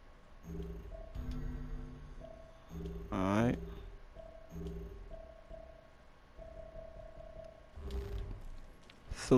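Soft electronic menu tones chime several times.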